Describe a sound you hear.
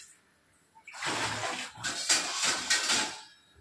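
Metal plates clatter onto a rack.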